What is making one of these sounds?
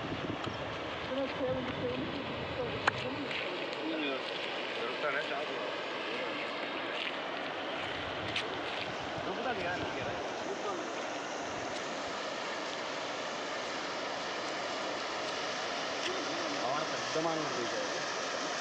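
Men talk nearby, calling out over the water.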